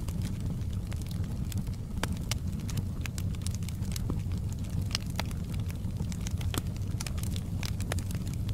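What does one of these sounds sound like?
Flames roar with a low, steady rumble.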